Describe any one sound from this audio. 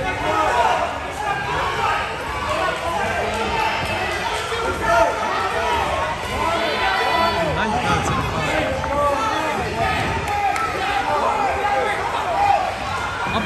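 A crowd of people talks and cheers in a large echoing hall.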